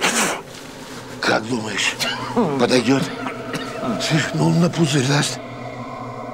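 An elderly man talks nearby in a calm voice.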